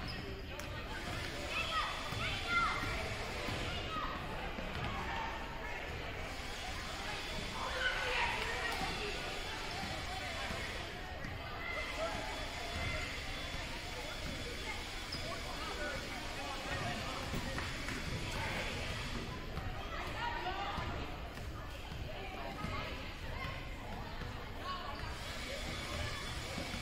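Children and adults chatter and call out in a large echoing hall.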